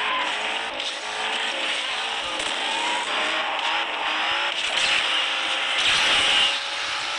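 A racing car engine roars at high speed.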